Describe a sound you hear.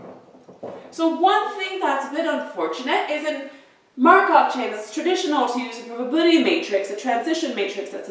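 A young woman speaks clearly and with animation, close by.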